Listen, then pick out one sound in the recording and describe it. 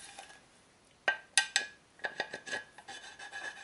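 Metal parts click and clink as they are handled.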